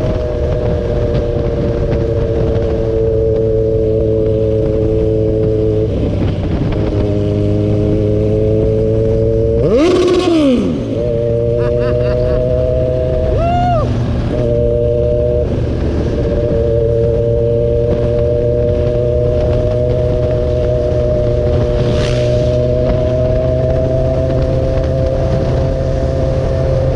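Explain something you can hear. Wind rushes past while riding.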